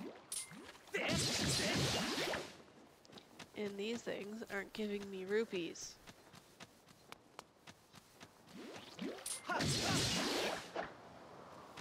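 A sword swishes through the air with a loud whoosh.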